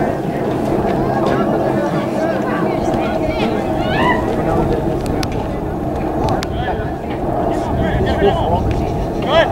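Spectators and players shout and call out across an open field outdoors.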